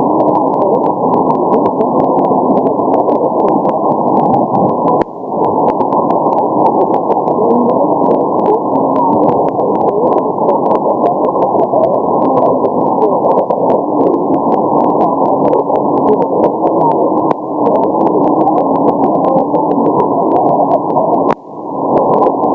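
A radio receiver gives off sharp clicks now and then.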